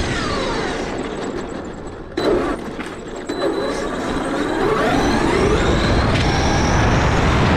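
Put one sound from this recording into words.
A small electric motor whines, rising in pitch as it speeds up.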